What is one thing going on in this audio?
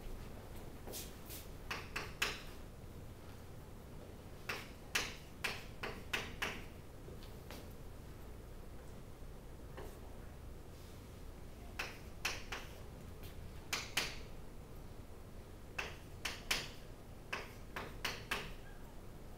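Chalk taps and scrapes against a board.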